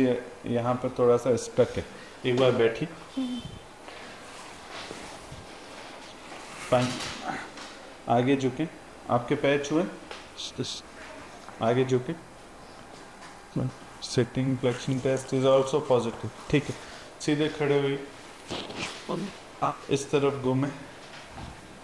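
A middle-aged man speaks calmly and clearly into a nearby microphone.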